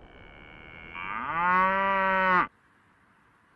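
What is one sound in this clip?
A cow moos loudly.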